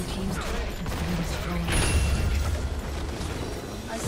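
A game structure crumbles with a heavy crash.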